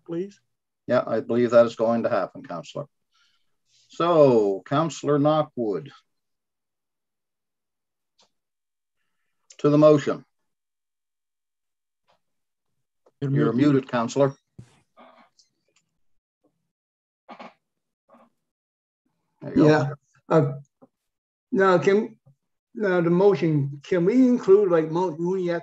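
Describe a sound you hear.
Adult men speak by turns over an online call, in short calm remarks.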